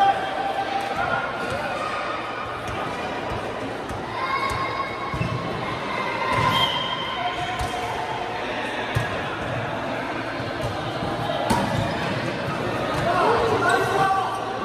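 A volleyball thumps off players' hands again and again.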